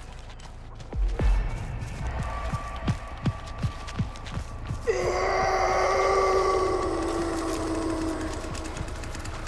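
Footsteps fall on gravel and grass.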